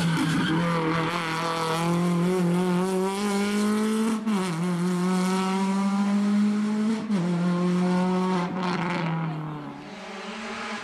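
A rally car engine roars at high revs, changing pitch with each gear shift.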